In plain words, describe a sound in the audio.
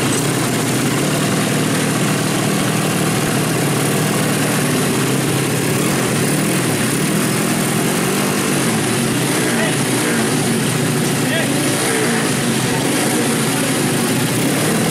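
A small motorcycle engine revs loudly and sharply, over and over.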